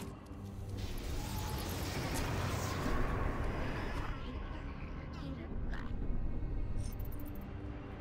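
Fire spells roar and crackle in bursts.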